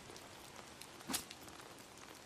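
A knife stabs with a sharp thud.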